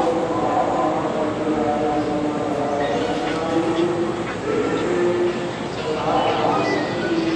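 A group of men recite a prayer together in a steady chant.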